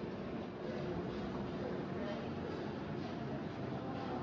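An escalator hums steadily.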